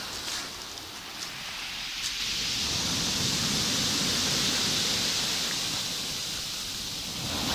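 Waves wash up onto a pebble beach and roll back with a rushing hiss.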